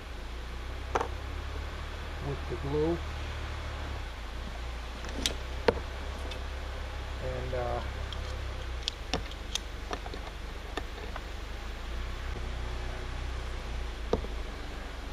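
Plastic pipe pieces knock and clatter against a bench.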